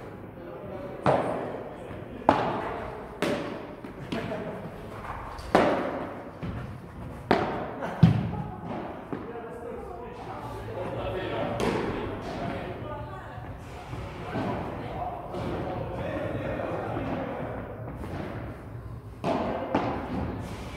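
Padel rackets hit a ball with sharp pops, echoing in a large indoor hall.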